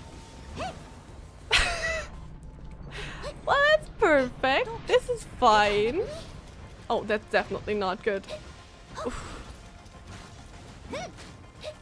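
A young woman talks with animation into a microphone, close by.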